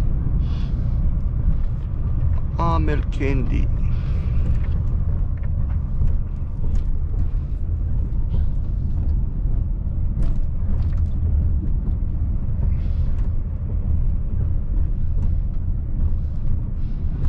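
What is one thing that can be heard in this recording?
Wind and road noise hiss around the cab.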